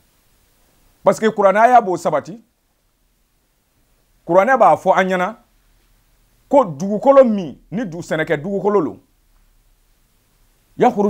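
A man speaks calmly and clearly into a close microphone, with pauses between phrases.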